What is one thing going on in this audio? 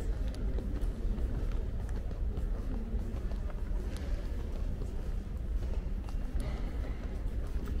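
A crowd murmurs softly in a large echoing hall.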